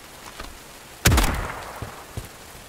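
A rifle fires a single loud shot that echoes briefly.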